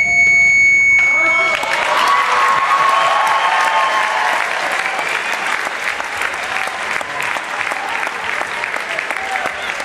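A large crowd cheers and applauds in an echoing hall.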